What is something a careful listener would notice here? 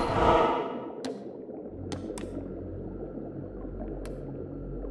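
Short soft menu clicks tick now and then.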